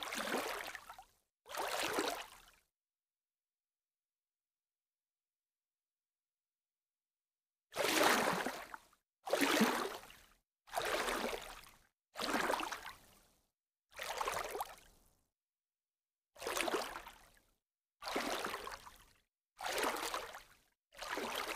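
Water bubbles and churns in short bursts.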